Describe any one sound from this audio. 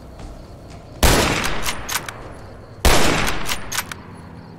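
A rifle fires loud shots that echo away.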